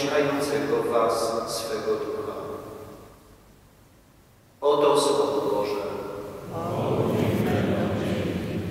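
A man chants through a loudspeaker in a large echoing hall.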